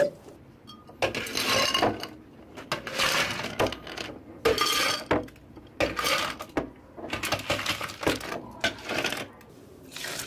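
Ice cubes clatter and clink into glass jars.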